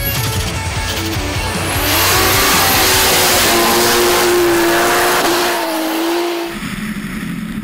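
Spinning tyres hiss and spray snow.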